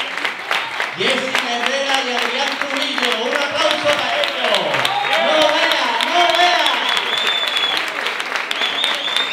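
A man sings into a microphone with feeling, amplified through loudspeakers.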